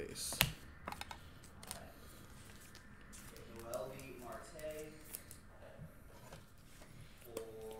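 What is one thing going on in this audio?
Cards rustle and flick as a hand shuffles them.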